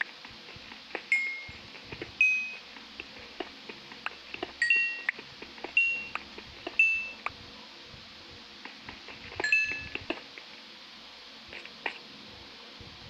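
Stone blocks crack and break in quick, dry clicks.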